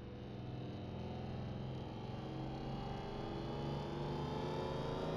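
A racing car engine screams at high revs, rising slightly in pitch.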